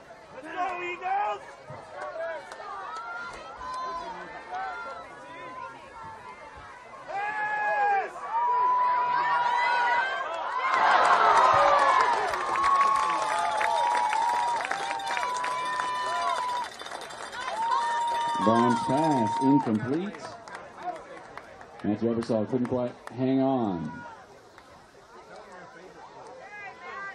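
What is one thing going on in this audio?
Young men shout and cheer loudly outdoors.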